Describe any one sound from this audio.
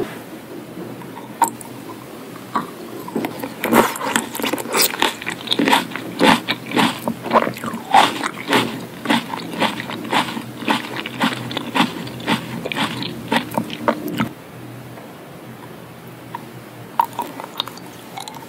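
A candy clicks against teeth and lips close to a microphone.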